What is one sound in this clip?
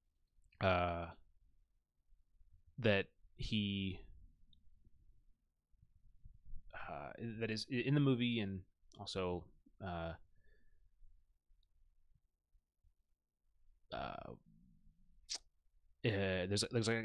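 A young man speaks into a microphone close up, in short bursts with pauses.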